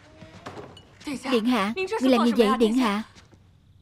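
A young woman speaks up close with a questioning, surprised tone.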